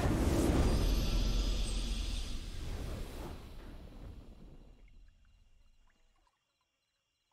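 A triumphant game fanfare booms loudly and slowly fades away.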